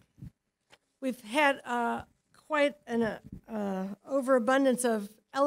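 An elderly woman speaks calmly through a microphone.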